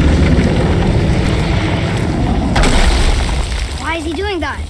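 A huge serpent roars loudly.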